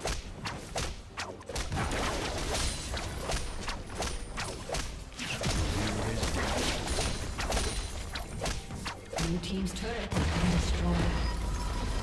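Game spells and attacks crackle and burst in quick succession.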